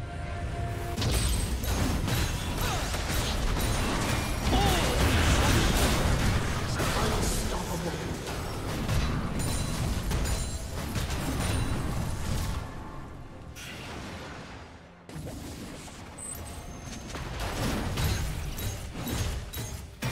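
Game weapons clash with sharp hits.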